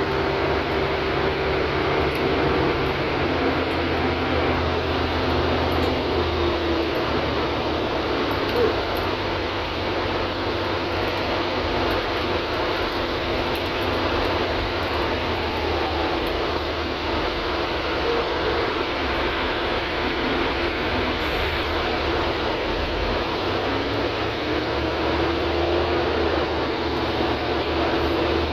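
The bus body rattles and vibrates as it drives.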